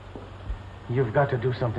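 An elderly man starts to speak.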